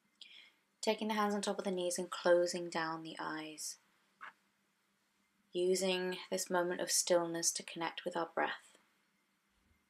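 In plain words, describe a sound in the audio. A woman speaks calmly and softly close to a microphone.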